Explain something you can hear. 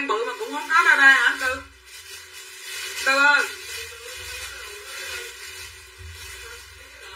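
A woman talks close by in a calm, conversational voice.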